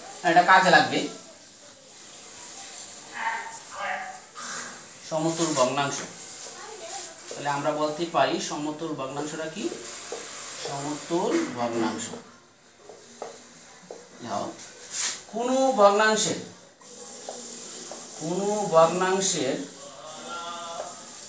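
A man speaks calmly nearby, as if explaining.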